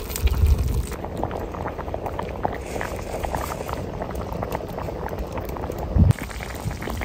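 A thick soup bubbles and simmers in a pot.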